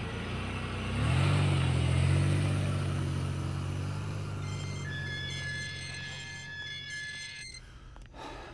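A car engine hums as a car pulls up.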